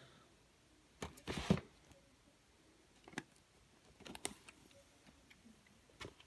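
Plastic cases clack and rattle as a hand sorts through them.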